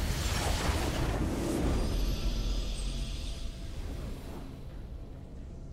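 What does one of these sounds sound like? A triumphant game fanfare plays and slowly fades.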